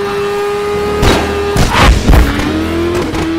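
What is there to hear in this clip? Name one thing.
A motorcycle crashes with loud thuds and scrapes.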